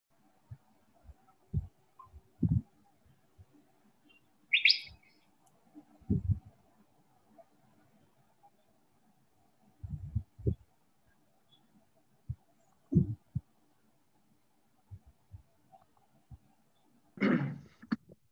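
An older woman speaks slowly and haltingly over an online call.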